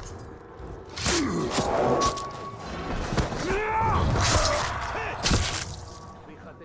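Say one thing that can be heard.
Heavy thuds and blows land during a struggle.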